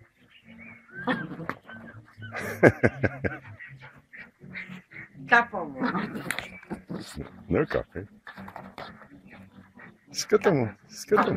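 A small dog growls and snarls while fighting.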